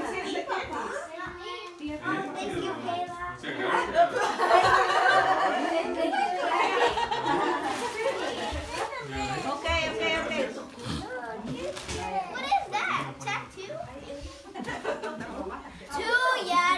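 A group of people talk and laugh excitedly nearby.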